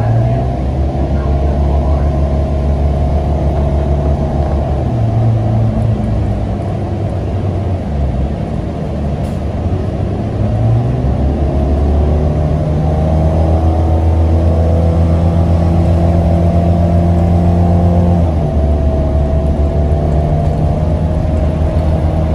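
A bus engine hums and whines loudly as the bus drives along.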